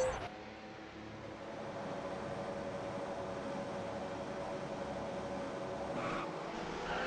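A racing car engine idles with a steady hum.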